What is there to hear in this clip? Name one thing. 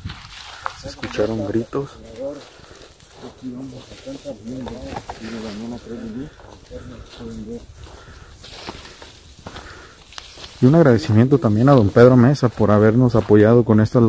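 A man talks quietly close by.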